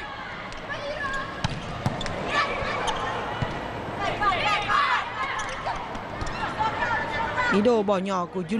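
A crowd cheers in a large indoor arena.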